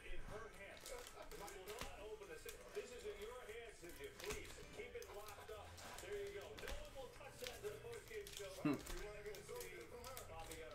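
Foil card packs rustle and crinkle as they are handled.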